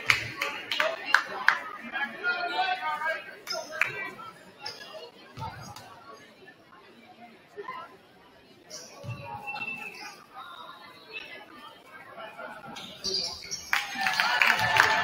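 A crowd murmurs and calls out.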